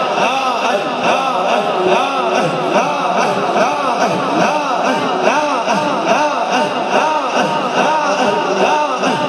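A man chants melodically into a microphone, amplified through loudspeakers.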